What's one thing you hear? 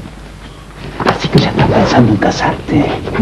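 A middle-aged man speaks, close by.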